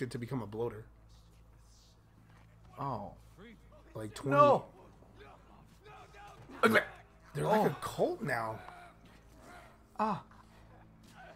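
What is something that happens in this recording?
A young man talks in bursts through a close microphone, with animation.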